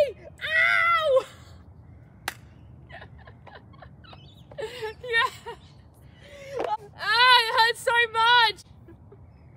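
A young woman squeals and shouts with excitement close by.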